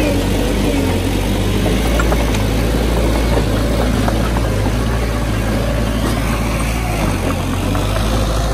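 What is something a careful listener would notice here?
Bulldozer tracks clank and squeak as the machine moves.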